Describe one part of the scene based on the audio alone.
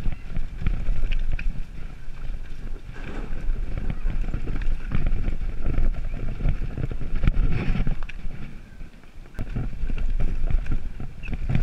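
Bicycle tyres rattle and crunch over a rough, stony dirt track.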